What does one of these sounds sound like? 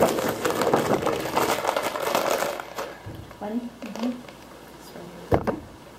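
Pens rattle in a cup.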